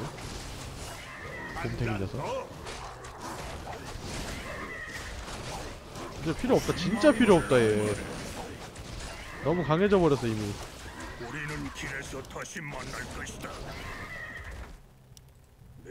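Weapons clash and spells crackle in a fantasy battle.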